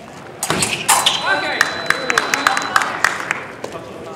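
Fencing blades clash and clatter sharply.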